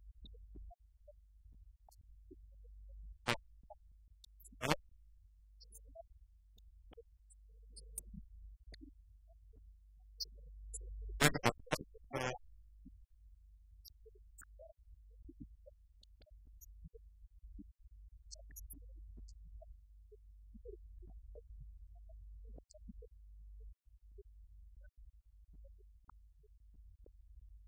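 Laptop keys click as people type.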